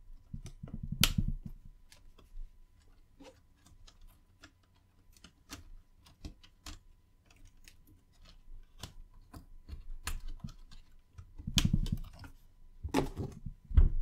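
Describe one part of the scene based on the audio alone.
Metal parts knock and clatter softly against each other.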